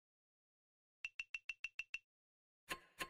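Short electronic ticks sound in quick succession.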